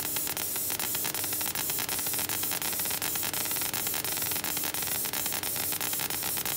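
A laser cutter's fan hisses steadily.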